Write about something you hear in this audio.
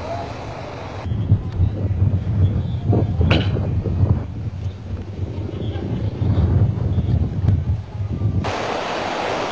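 Water splashes as a man wades through a flood.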